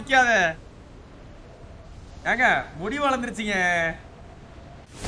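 A young man speaks excitedly into a close microphone.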